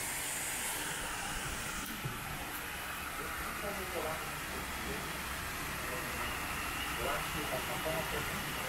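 A small waterfall splashes and rushes steadily nearby.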